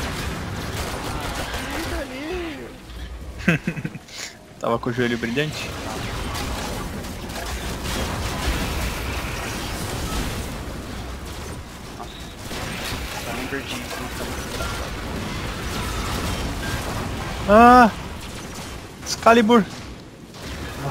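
Gunfire and explosions crackle from a game.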